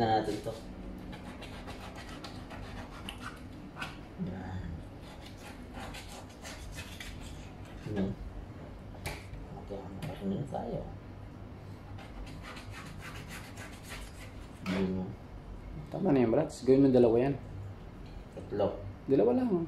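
A knife scrapes and cuts through fish.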